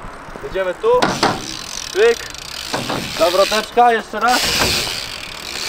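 A bike's wheels knock against a ramp.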